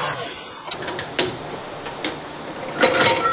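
Metal parts clank and click as a lathe chuck is handled.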